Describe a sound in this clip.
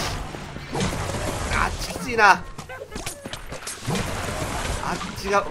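Magic spells burst with whooshing, crackling blasts.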